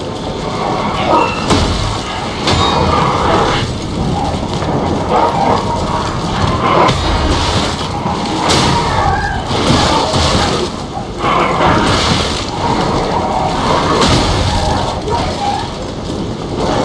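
Swords clash and slash against enemies with sharp metallic hits.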